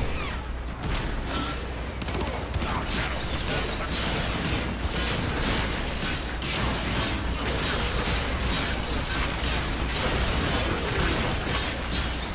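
Explosions burst and rumble.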